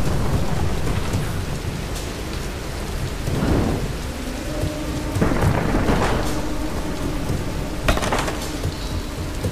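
Fire crackles and roars.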